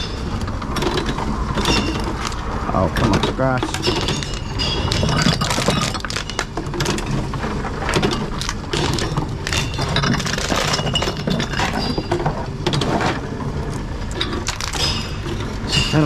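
Plastic bottles and cans clatter and rattle as they are fed into a recycling machine.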